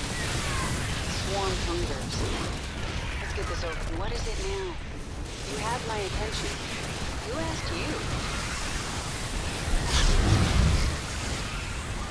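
Electric zaps crackle sharply.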